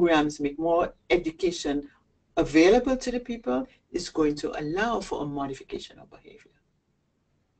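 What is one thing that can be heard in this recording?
A middle-aged woman speaks with animation into a nearby microphone.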